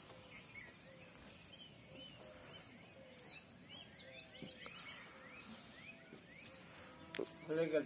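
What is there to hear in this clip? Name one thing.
Birds chirp outdoors.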